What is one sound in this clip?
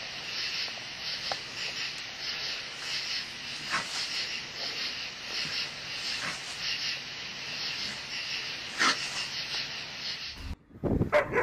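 A cat hisses.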